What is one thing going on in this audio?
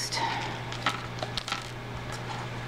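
A plastic packet crinkles and rustles in a hand.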